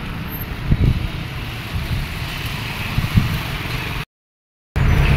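Traffic rumbles along a road outdoors.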